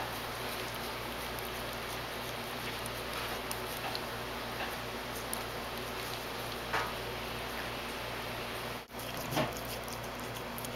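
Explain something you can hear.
A cat chews and licks at food with soft wet smacking sounds.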